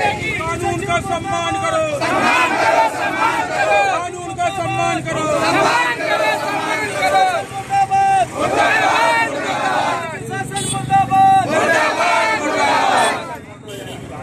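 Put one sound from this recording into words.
A crowd of men and women chants slogans loudly outdoors.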